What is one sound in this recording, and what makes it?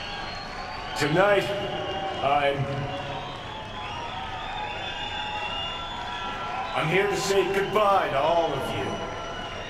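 A man speaks into a microphone, heard through loudspeakers in a large hall.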